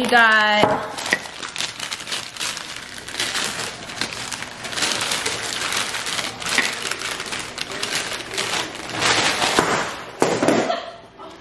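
Paper crinkles and rustles as it is unwrapped.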